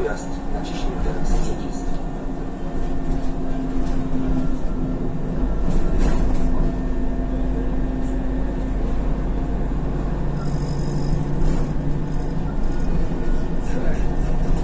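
A bus engine hums and drones steadily while driving.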